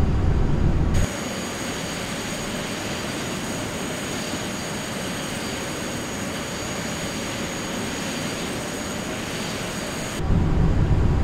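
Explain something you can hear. A jet engine whines and roars steadily, heard from outside the plane.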